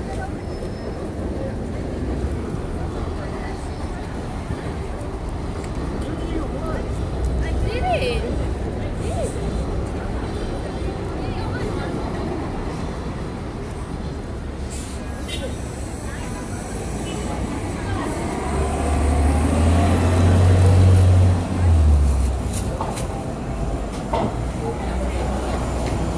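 A busy street crowd murmurs outdoors.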